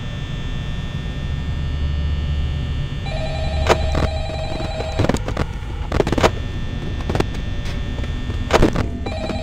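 A small electric fan hums and whirs steadily.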